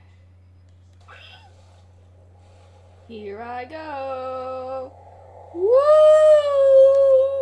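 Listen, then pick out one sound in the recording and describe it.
Water splashes softly.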